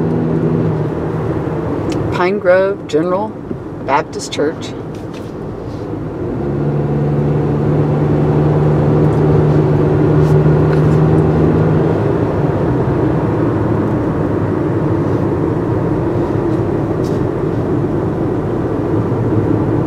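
A car's engine hums at cruising speed, heard from inside the car.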